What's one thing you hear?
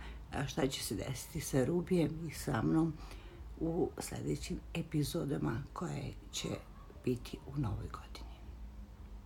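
An older woman speaks softly and close to the microphone.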